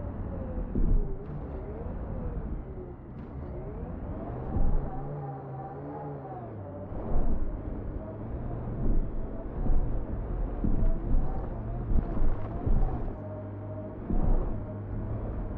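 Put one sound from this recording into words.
Wheels thud and bump over rocks.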